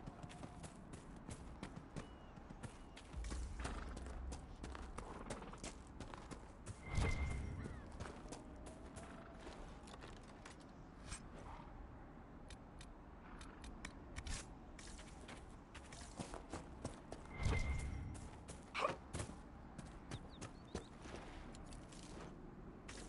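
Footsteps crunch on grass and dirt as a character runs.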